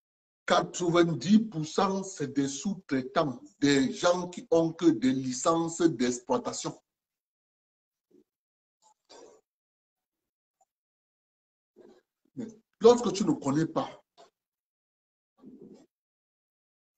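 A middle-aged man speaks with animation, close to a microphone, with pauses.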